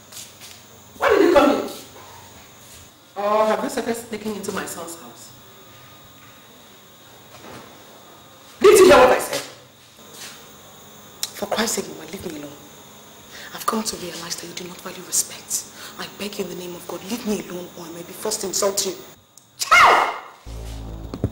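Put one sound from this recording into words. An older woman speaks loudly and angrily, sometimes shouting.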